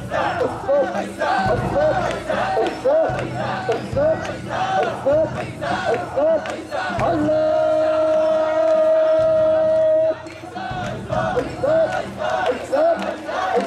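A large group of men chant loudly in rhythm, close by, outdoors.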